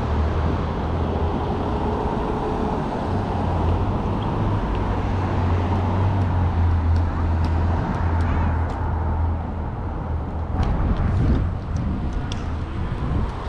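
Wind rushes loudly past, outdoors.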